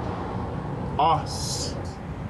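A man exclaims briefly, close by.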